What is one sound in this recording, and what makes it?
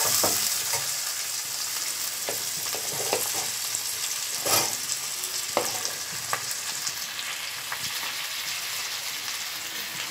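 Chopped vegetables drop into a pan with soft thuds.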